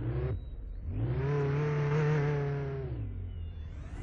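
A car engine starts and revs.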